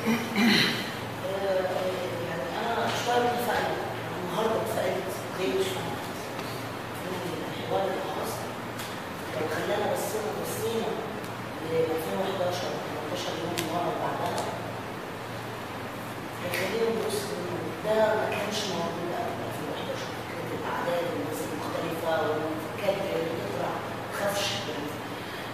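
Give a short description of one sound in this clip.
A middle-aged woman speaks calmly and at length.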